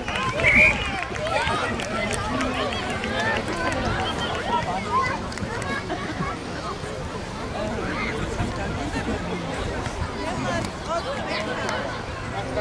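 Children shout to each other while playing on a field.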